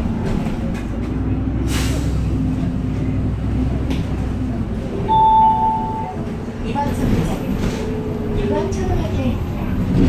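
A city bus engine rumbles low, heard from inside the bus.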